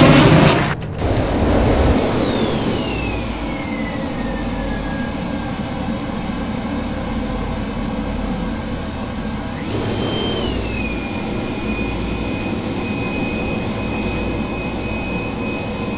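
A fighter jet's engines whine and drone, heard from inside the cockpit.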